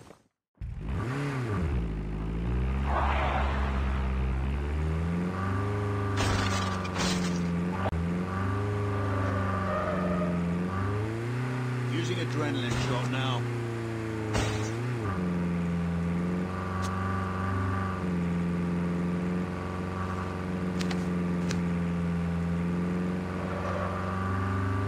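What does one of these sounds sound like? A vehicle engine drones steadily, its pitch rising and falling as it speeds up and slows down.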